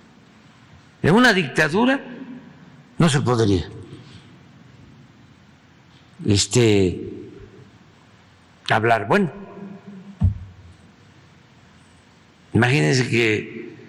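An older man speaks slowly and deliberately into a microphone, in short phrases with long pauses.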